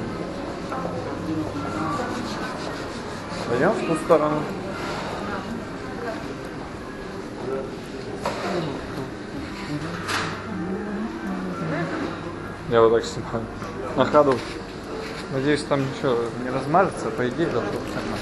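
Voices of a crowd murmur and chatter in a large echoing hall.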